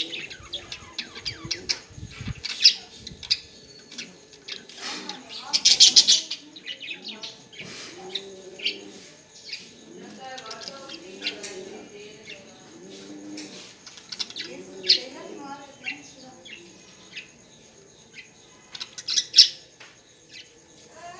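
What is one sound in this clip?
A budgerigar chirps and chatters in quick high bursts.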